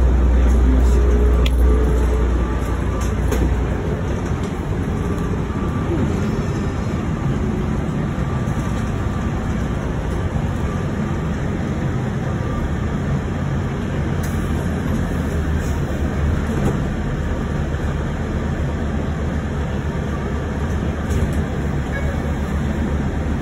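A bus engine rumbles steadily while the bus drives.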